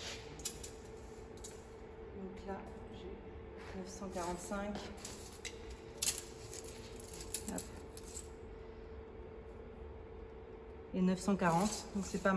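A metal tape measure clicks and rattles as it is pulled out.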